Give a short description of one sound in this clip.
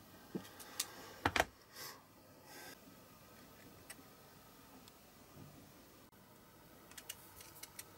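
Small metal parts click and tap against each other.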